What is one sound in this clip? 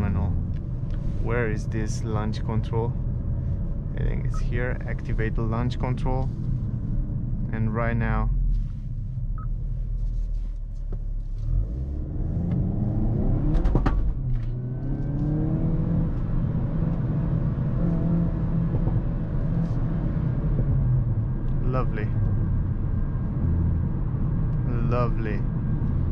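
A car engine hums steadily and revs up and down while driving.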